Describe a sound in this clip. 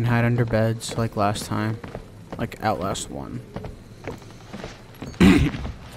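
Footsteps creak on wooden floorboards.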